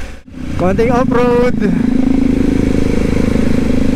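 Another motorcycle rides past close by.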